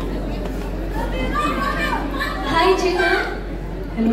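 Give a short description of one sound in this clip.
A young woman speaks into a microphone over a loudspeaker.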